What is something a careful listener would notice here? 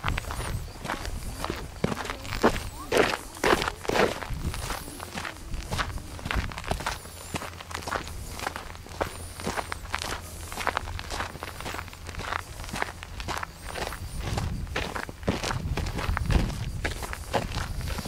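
Bicycle tyres crunch and rattle over a bumpy dirt trail.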